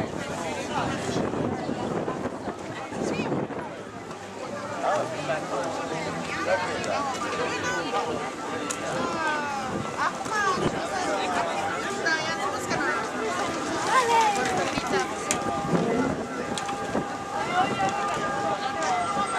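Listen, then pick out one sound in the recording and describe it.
Men and women chat in a lively murmur nearby outdoors.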